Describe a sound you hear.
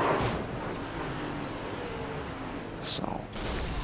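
Tyres skid and screech as a car spins.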